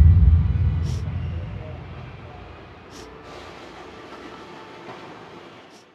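A woman sobs quietly.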